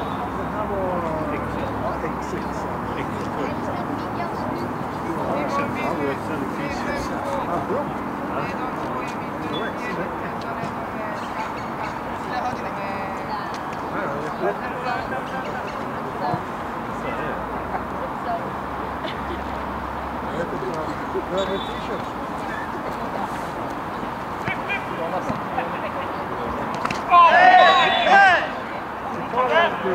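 Football players shout and call to each other across an open field.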